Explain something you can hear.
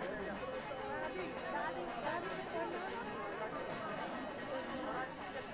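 A hand drum is beaten in a rhythm.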